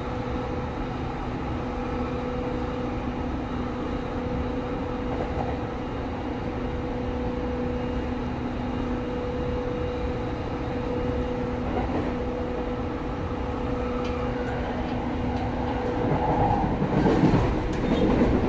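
A train rumbles steadily along the tracks with a low hum.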